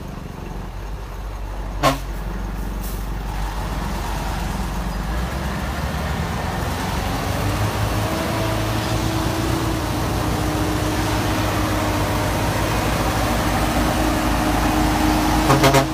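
Truck tyres squelch through thick mud.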